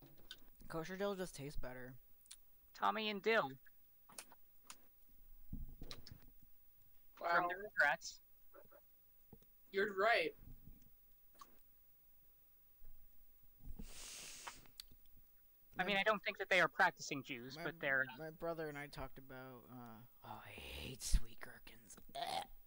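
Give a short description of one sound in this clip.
A young man talks casually into a close microphone, in bursts with pauses.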